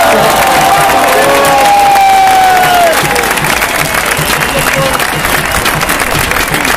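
A large outdoor crowd claps and applauds.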